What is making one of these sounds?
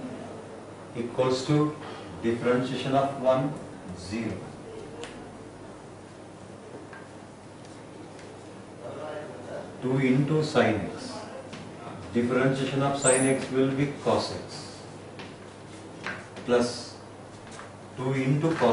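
An elderly man speaks calmly, explaining.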